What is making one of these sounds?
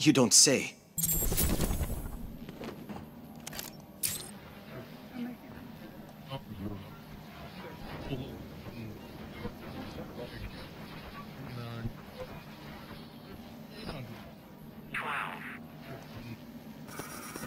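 A radio crackles and hisses as it is tuned.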